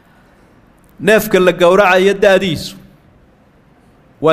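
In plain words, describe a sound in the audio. An elderly man speaks slowly and solemnly into a microphone, heard through a loudspeaker in an echoing hall.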